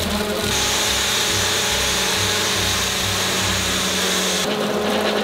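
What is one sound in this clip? A concrete vibrator hums and buzzes steadily.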